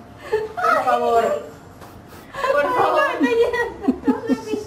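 A young woman speaks playfully close by.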